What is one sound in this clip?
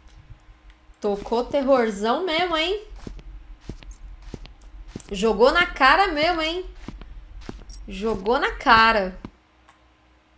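A young woman talks with animation into a microphone, close by.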